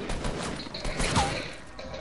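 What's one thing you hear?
Gunshots crack nearby.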